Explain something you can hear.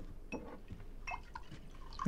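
Liquid pours from a bottle into a glass.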